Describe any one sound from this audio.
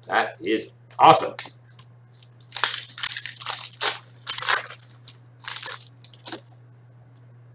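A plastic wrapper crinkles and tears as it is ripped open.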